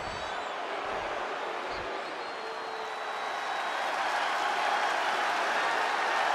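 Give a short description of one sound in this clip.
A large crowd cheers and roars in a big echoing arena, growing louder.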